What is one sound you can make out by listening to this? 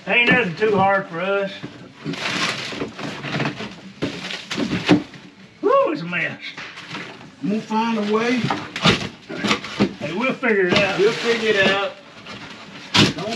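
Broken debris rustles and clatters as it is pulled from the floor.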